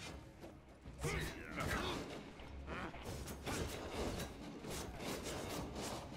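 Magic blasts burst and crackle.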